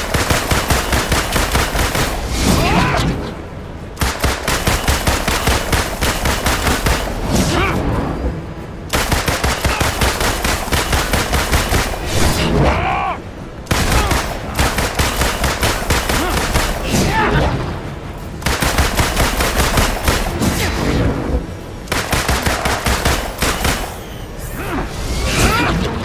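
Pistols fire in rapid bursts.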